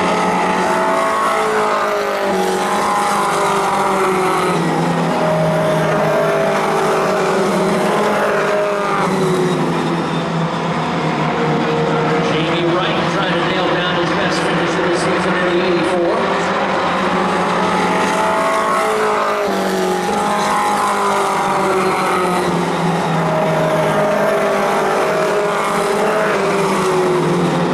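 Race car engines roar loudly as the cars speed past, rising and falling in pitch.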